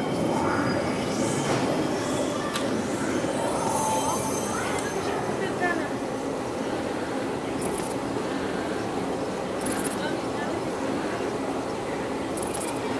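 A machine's motors whir steadily.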